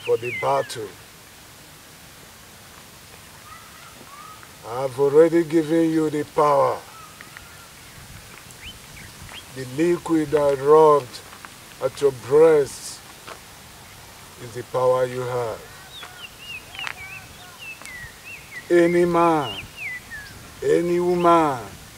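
A woman chants loudly in short, wavering bursts.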